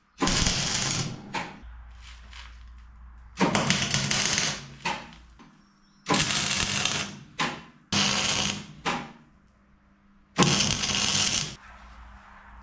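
An arc welder crackles and hisses in short bursts.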